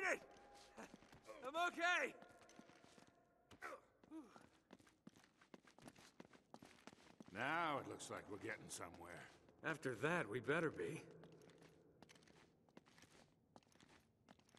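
Footsteps run and climb on stone.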